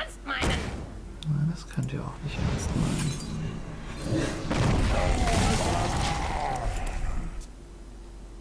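Game sound effects whoosh and chime.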